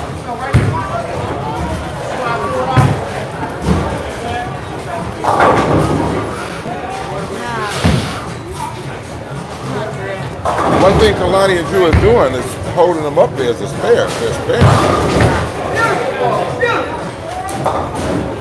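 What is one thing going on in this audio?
Voices of men and women chatter in a large echoing hall.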